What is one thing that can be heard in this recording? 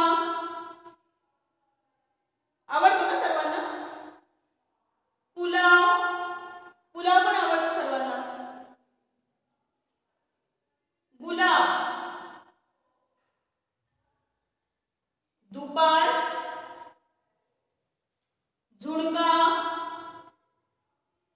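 A woman speaks clearly and slowly, pronouncing single words in short phrases with pauses between them.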